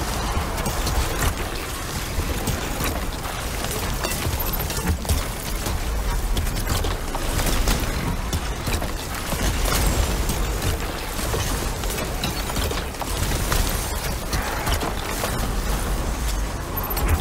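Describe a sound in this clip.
Energy blasts explode with loud booms and crackles.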